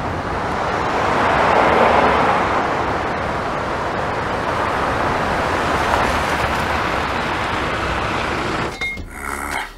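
Car engines hum as traffic passes close by.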